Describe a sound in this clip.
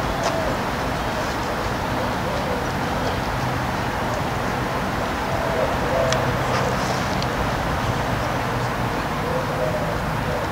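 Wind blows through tree branches outdoors.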